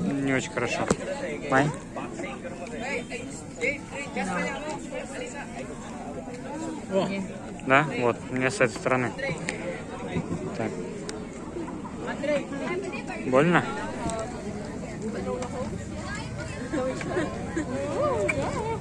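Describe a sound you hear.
A crowd murmurs in the background outdoors.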